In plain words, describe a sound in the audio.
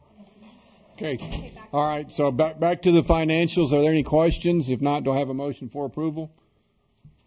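A man speaks calmly through a microphone in a room with a slight echo.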